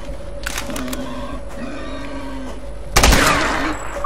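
A boar grunts and squeals.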